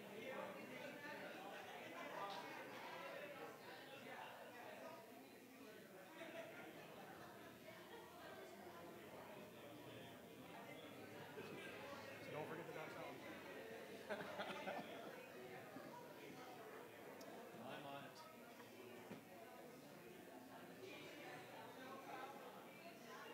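A crowd of men and women chat and greet one another warmly in an echoing hall.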